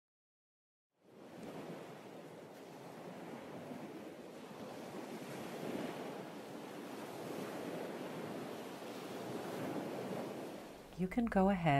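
Small waves wash up onto a pebbly shore.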